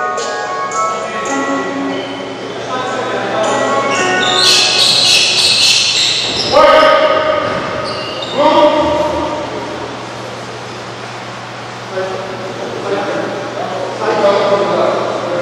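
A crowd of young spectators chatters and calls out in a large echoing gym.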